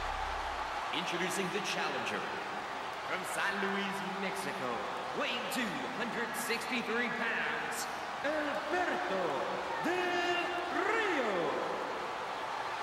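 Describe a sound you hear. A man announces loudly through a loudspeaker, echoing in the arena.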